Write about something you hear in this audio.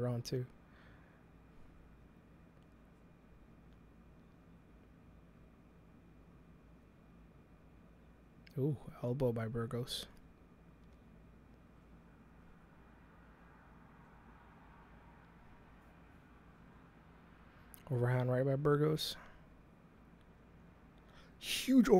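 A man speaks calmly and closely into a microphone, in short bursts with long pauses.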